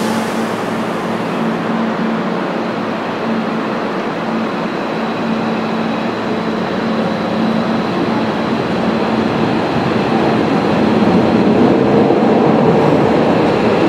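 A train rolls slowly out along the track, rumbling and gathering speed.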